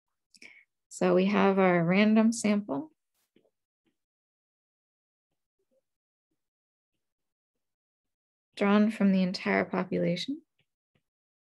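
A woman speaks calmly and clearly into a close microphone, with long pauses.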